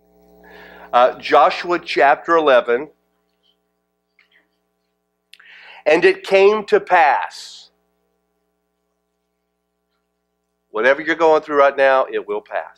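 A middle-aged man speaks into a microphone in a calm, conversational way, with pauses.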